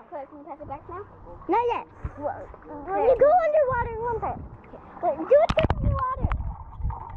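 A young girl speaks close by.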